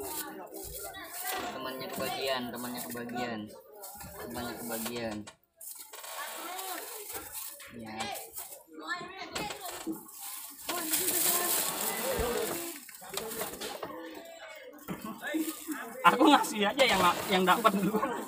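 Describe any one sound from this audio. Children talk and chatter close by.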